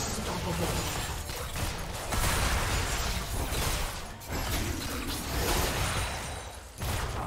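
Spell effects crackle and burst in a game battle.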